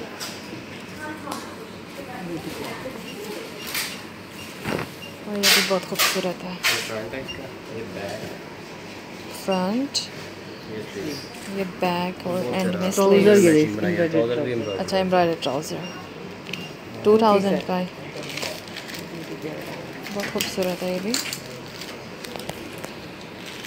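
Fabric rustles and crinkles as cloth is handled.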